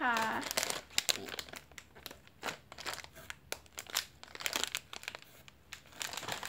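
Plastic packaging crinkles and rustles in hands.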